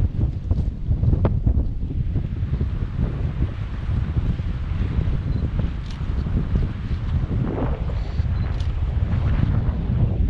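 Wind rumbles and buffets against a microphone outdoors.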